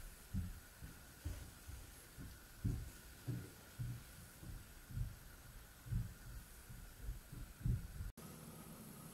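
A cloth rubs and bumps against a wooden bowl.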